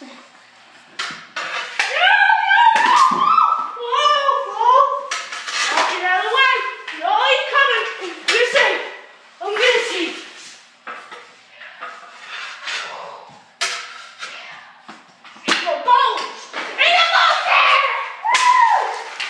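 A hockey stick slaps a ball on a hard floor.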